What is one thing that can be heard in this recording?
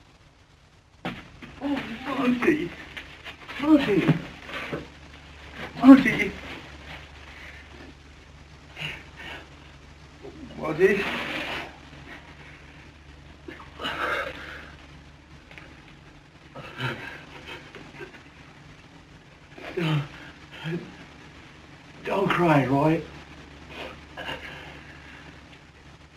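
A man speaks softly and tenderly, close by.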